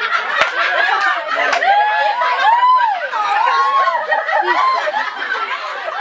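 A young woman giggles close to a microphone.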